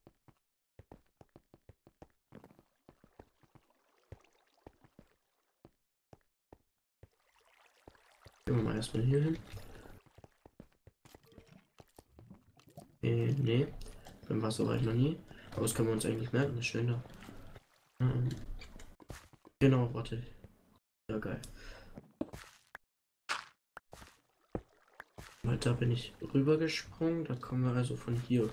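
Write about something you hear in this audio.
Footsteps tap softly on stone.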